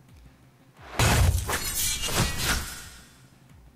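A game attack effect bursts with a loud whoosh and crackle.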